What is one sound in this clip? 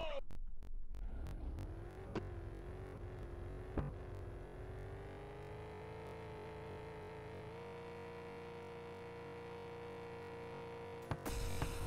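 A car engine hums and slowly rises in pitch as it speeds up.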